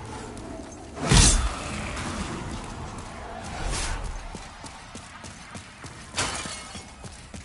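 A sword swings and strikes with a heavy impact.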